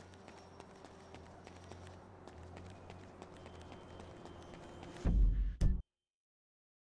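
Footsteps run across paving.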